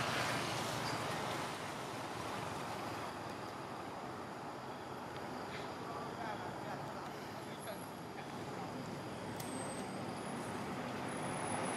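Leaves rustle steadily in a breeze outdoors.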